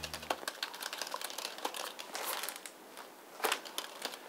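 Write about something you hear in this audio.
Papers rustle briefly.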